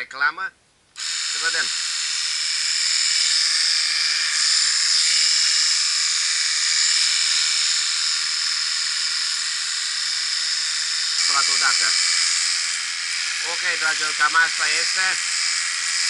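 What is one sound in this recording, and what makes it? A pressure washer sprays water with a steady loud hiss.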